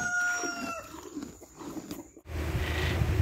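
A cow munches and crunches fresh leaves close by.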